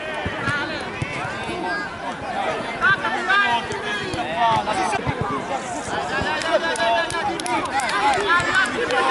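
Many children shout and call out across an open field.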